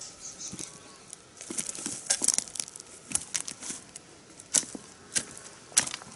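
Dry stems and roots rustle and crackle as they are pulled from the ground.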